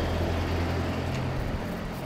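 A bicycle rolls past, pushed along slowly.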